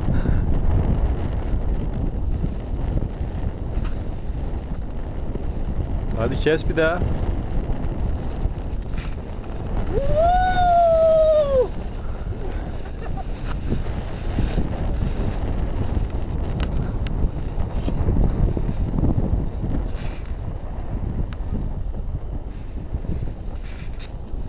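Wind buffets loudly outdoors throughout.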